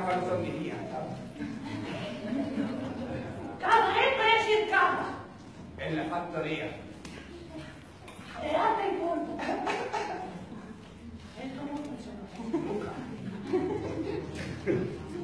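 A second young man answers with animation in an echoing hall.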